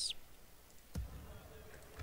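A short click sounds.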